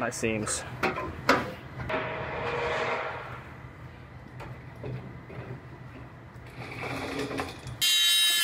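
A metal panel clanks and rattles as it is handled.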